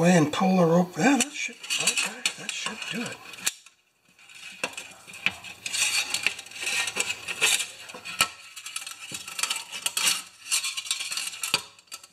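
Plastic parts click and rattle as they are handled close by.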